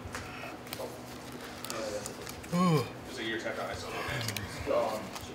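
Playing cards riffle and click as they are shuffled.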